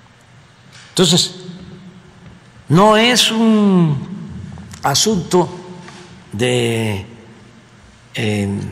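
An elderly man speaks calmly and deliberately into a microphone, with pauses between phrases.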